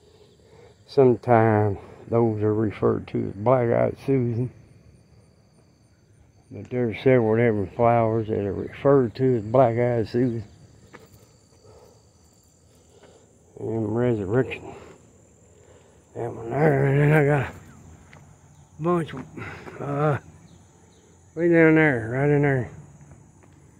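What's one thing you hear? A man talks calmly close by, in short bursts with pauses.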